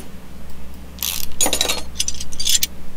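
A ratchet wrench clicks rapidly while unscrewing a bolt.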